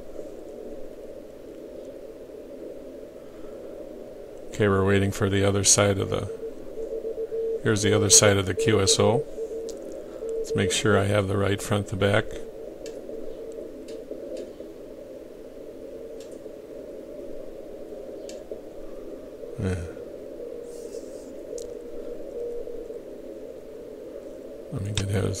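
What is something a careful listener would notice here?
Morse code beeps come faintly through a radio receiver.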